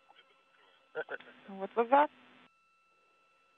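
A man speaks briefly over a radio link.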